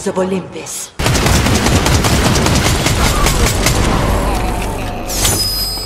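Gunfire rattles rapidly.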